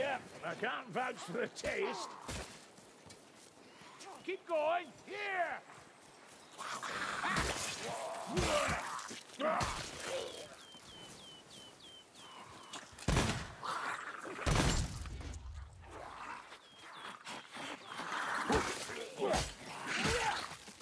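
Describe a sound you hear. A blade swings and strikes with sharp hits.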